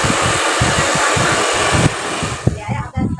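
A hair dryer blows with a loud steady whoosh.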